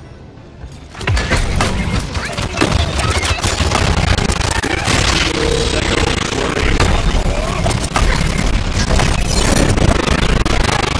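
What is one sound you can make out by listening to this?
Rapid energy weapon blasts fire and crackle in a video game.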